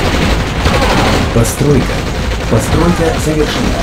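Explosions boom in a battle.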